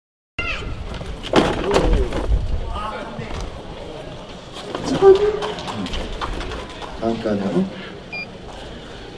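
A man announces through a loudspeaker with animation.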